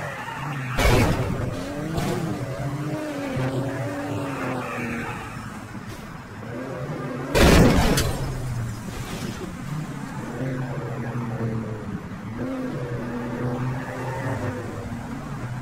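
A racing car engine revs and drones.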